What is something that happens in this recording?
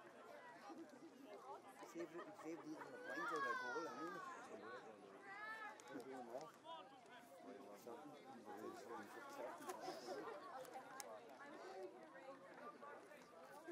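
Men and young men nearby chat among themselves.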